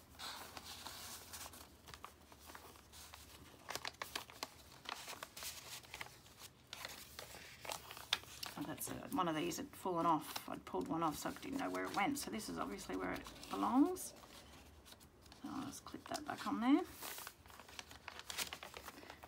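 Paper pages rustle and crinkle as they are handled and turned.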